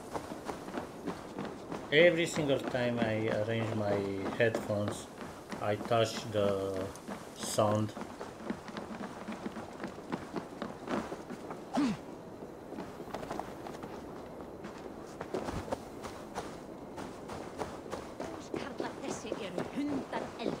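Footsteps thud on wooden boards and crunch through snow.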